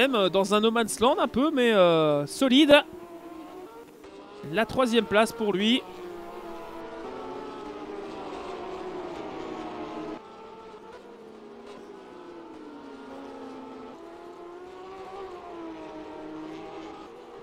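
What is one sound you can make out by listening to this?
A racing car engine revs and whines, rising and falling as it changes gear.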